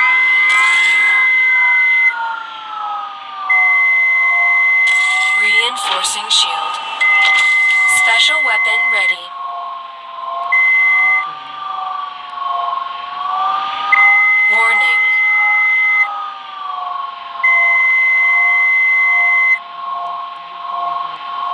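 A spaceship engine hums steadily, rising and falling slightly in pitch.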